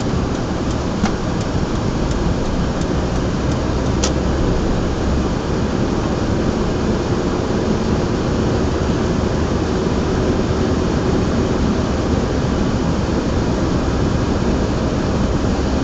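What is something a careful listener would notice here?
A car engine hums and tyres roar steadily on the road.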